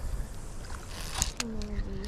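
A fishing reel clicks as its handle turns.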